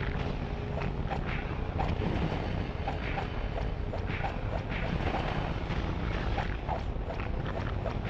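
Fire whooshes in bursts.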